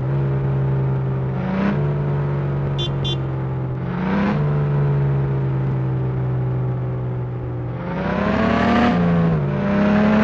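A truck engine hums steadily and revs up as it shifts gears.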